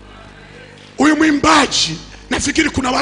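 A man preaches loudly and with animation into a microphone.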